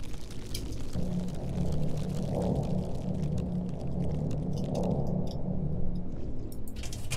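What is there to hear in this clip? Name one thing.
A glowing machine hums with a low, pulsing drone.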